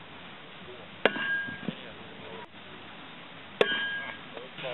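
An axe thuds into a wooden target.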